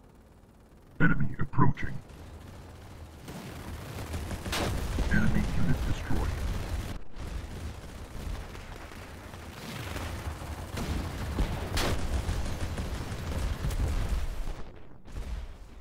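Laser guns fire in rapid bursts with loud blasts.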